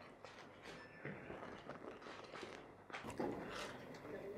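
An older man speaks calmly through a microphone in a large room.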